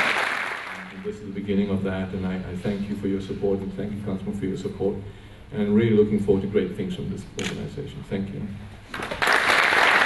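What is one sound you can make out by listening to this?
A man speaks calmly into a microphone over loudspeakers.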